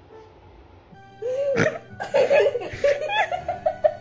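A dog whines softly.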